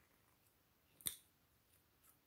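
A small plastic bottle cap clicks sharply as it is unscrewed.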